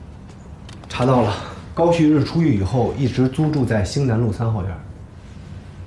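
A second man speaks calmly and firmly nearby.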